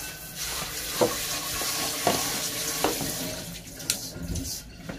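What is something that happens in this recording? A metal wok knocks against a sink.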